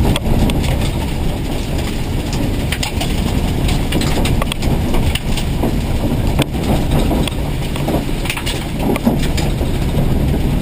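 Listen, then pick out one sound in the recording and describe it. A man reads out pace notes quickly over a helmet intercom.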